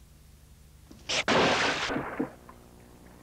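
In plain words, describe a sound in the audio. A wooden mallet pounds heavily into a basket.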